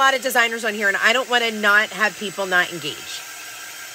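A heat gun blows with a steady whirring hiss.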